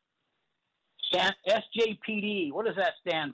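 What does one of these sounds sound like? A person speaks clearly over an online call.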